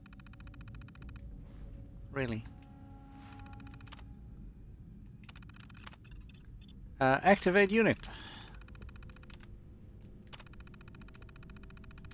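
A computer terminal chirps with rapid electronic beeps as text prints out.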